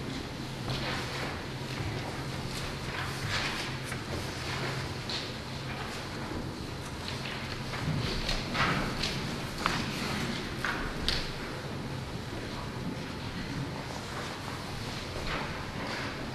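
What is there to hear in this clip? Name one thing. Objects clink and knock softly in an echoing hall.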